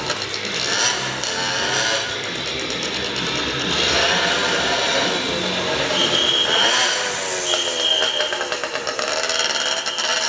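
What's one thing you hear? A motorcycle engine idles and putters.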